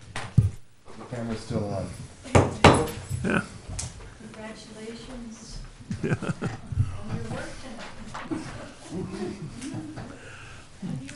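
A woman speaks to a panel, heard from a short distance.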